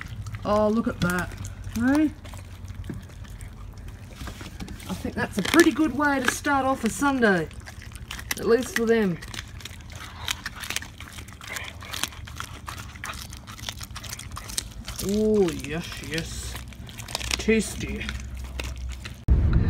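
A dog gnaws and chews on raw meat.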